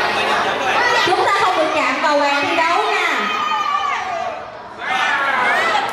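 Children and adults chatter excitedly all around.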